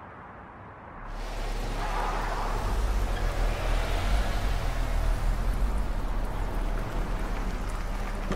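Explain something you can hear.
Car engines rumble as vehicles pull up and idle.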